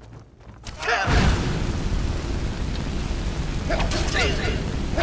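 Fire roars and crackles loudly.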